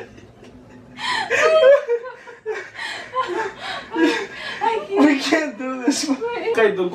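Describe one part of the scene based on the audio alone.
A young woman laughs and talks nearby.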